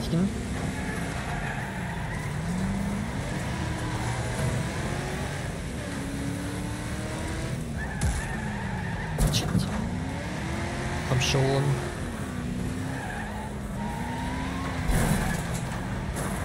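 Tyres screech as cars slide.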